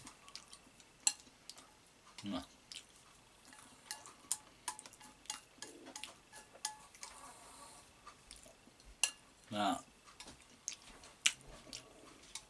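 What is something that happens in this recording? Chopsticks click against a ceramic bowl.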